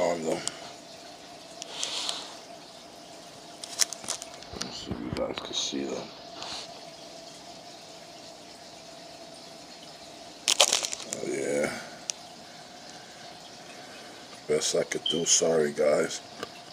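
A plastic bag of water crinkles and rustles as it is handled.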